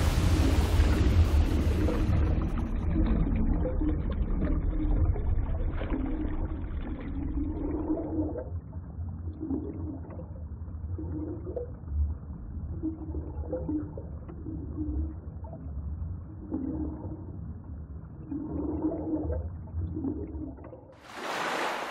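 A swimmer strokes through water with muffled, rhythmic pulls.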